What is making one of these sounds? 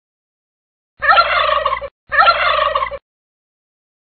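A turkey gobbles twice.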